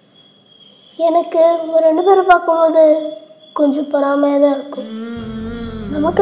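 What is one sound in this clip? A young boy speaks, close by.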